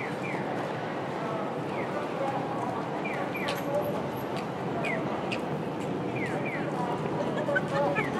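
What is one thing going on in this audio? Footsteps shuffle across pavement.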